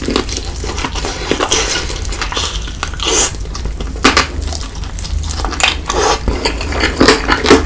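A man chews crunchy fried food close to a microphone.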